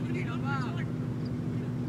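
A man calls out outdoors across an open field.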